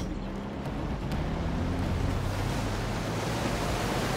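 Water splashes against a moving boat.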